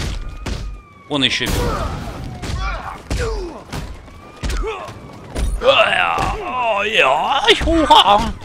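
Heavy punches and kicks thud in a fast brawl.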